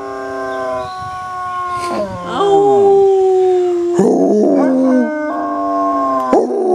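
A dog howls and bays loudly nearby in long drawn-out cries.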